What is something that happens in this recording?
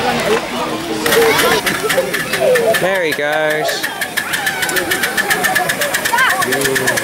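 A small steam locomotive chuffs in a quick, steady rhythm.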